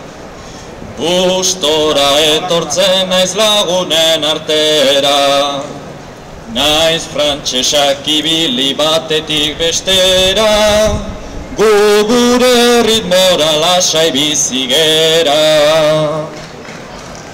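A young man sings through a microphone.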